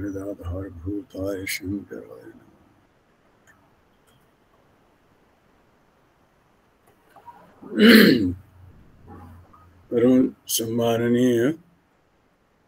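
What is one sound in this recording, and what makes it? An elderly man speaks calmly through an online call, with pauses.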